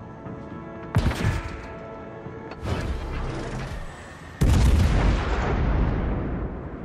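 Heavy naval guns fire with loud, deep booms.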